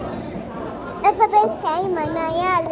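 A young child slaps hands on a table.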